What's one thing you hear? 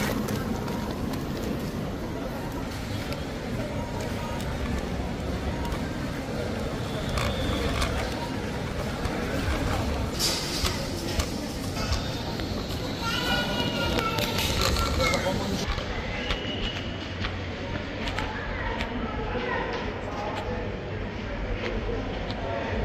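A shopping cart's wheels rattle and rumble over a smooth floor.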